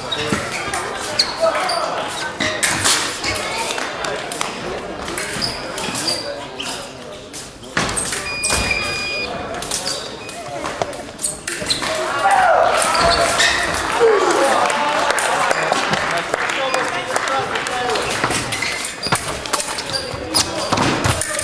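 Footsteps squeak on a hard floor in a large echoing hall.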